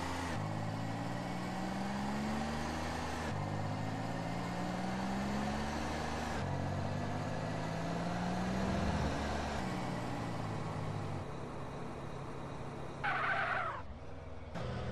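A car engine revs up through the gears, rising in pitch and dropping at each shift.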